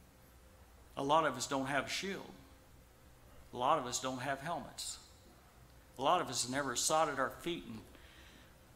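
A middle-aged man speaks with emphasis through a microphone, in short bursts with pauses.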